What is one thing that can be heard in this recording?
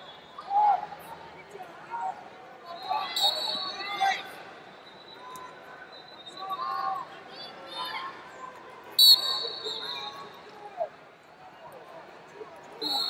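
A large crowd chatters and calls out in a big echoing arena.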